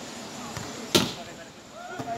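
A volleyball is struck with a sharp smack.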